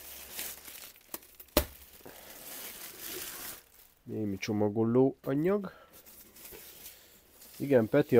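Plastic wrapping crinkles as it is lifted out of a box.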